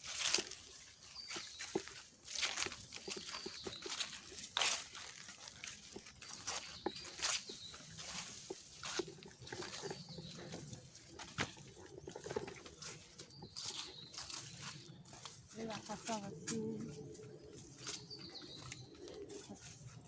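Footsteps rustle through dry grass and undergrowth.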